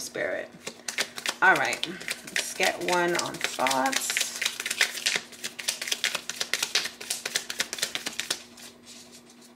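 Playing cards riffle and flap as they are shuffled by hand.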